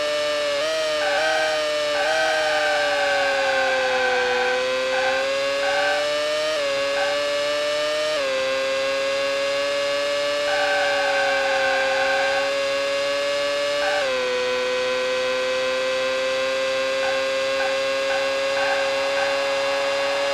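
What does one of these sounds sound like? Tyres squeal in the corners.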